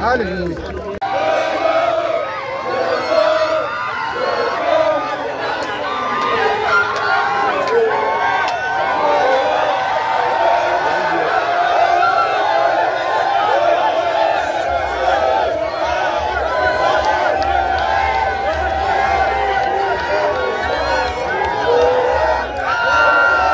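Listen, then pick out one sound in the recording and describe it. A crowd sings and cheers loudly together.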